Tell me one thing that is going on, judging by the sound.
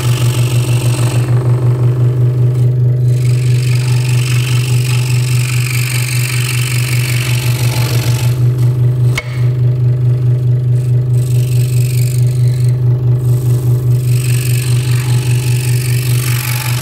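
A scroll saw blade rasps through thin wood.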